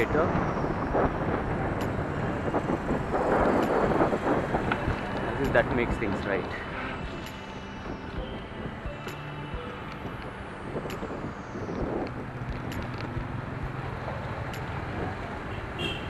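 Motorbike engines hum past nearby.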